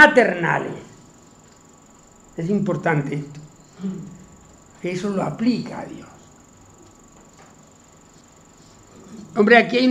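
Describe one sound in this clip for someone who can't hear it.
An elderly man speaks calmly in short bursts with pauses.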